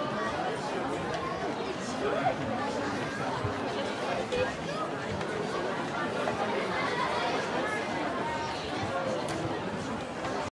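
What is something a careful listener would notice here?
A crowd chatters and cheers loudly nearby.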